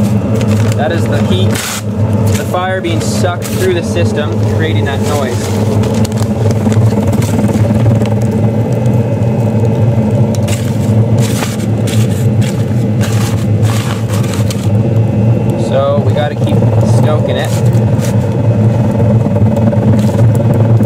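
A charcoal fire crackles softly.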